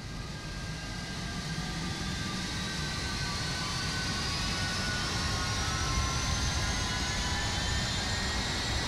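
A jet engine whines and roars, its pitch slowly rising.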